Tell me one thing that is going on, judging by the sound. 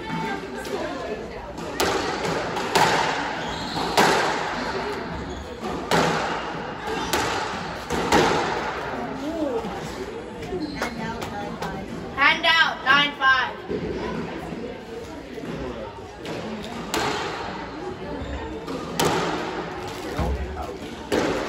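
Squash racquets strike a ball in an echoing court.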